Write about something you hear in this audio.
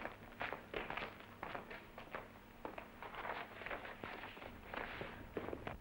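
Clothing rustles as a man handles his jacket.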